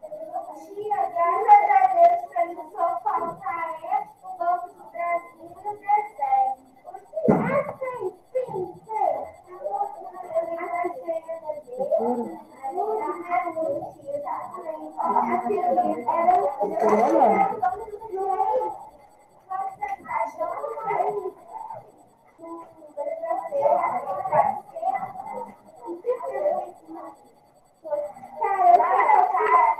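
A woman speaks calmly through a microphone on an online call.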